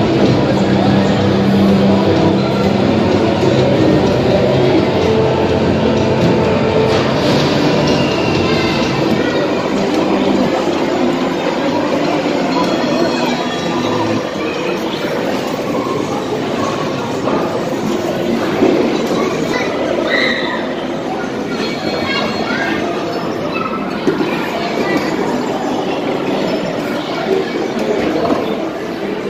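Arcade game machines play loud electronic music and jingles all around.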